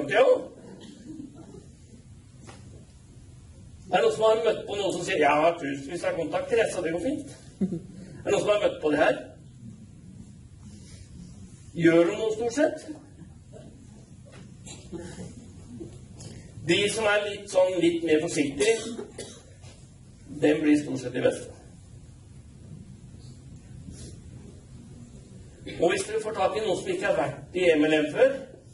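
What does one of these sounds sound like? A man speaks calmly through a microphone in a large echoing hall, pausing between phrases.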